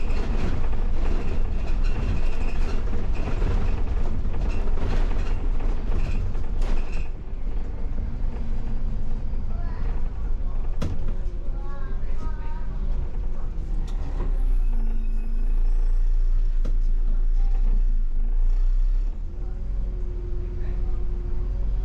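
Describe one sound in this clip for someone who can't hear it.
A bus engine hums and rumbles steadily from inside the cab.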